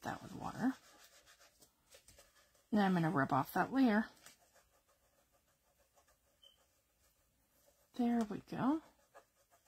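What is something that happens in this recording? Hands rub and smooth paper softly.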